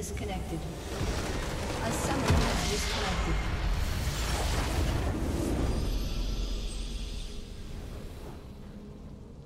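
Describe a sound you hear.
A huge structure bursts apart with a loud, roaring blast that slowly fades.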